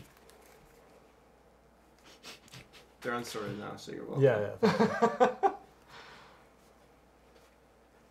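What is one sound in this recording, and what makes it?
Playing cards slap and shuffle on a table.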